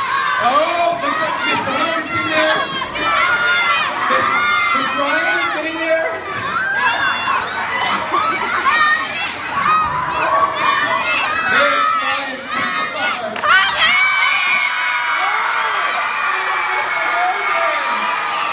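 A crowd of young people cheers and shouts loudly in a large echoing hall.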